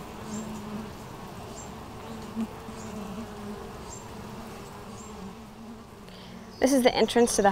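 Honeybees buzz in a steady, low hum close by.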